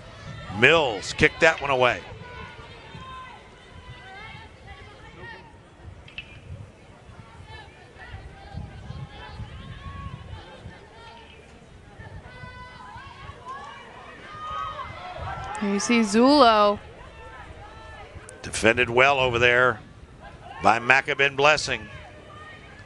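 Players shout loudly to each other outdoors on an open field.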